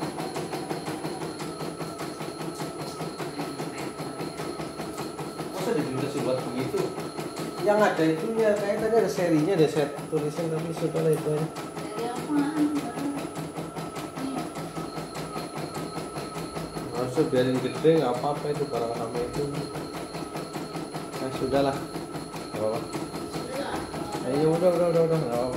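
An embroidery machine stitches with a fast, steady rattle of the needle.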